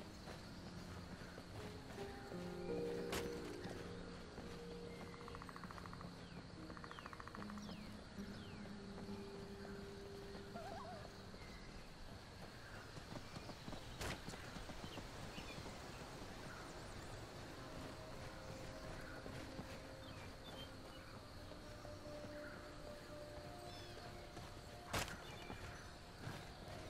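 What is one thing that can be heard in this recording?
Footsteps crunch steadily over dirt and stone.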